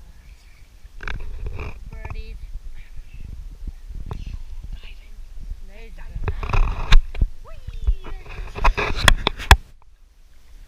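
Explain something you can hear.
Water splashes and laps close by.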